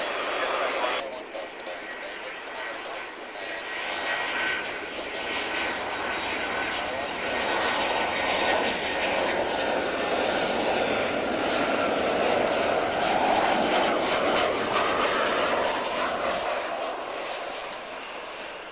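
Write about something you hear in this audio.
A Boeing 737 jet airliner roars past low on its landing approach.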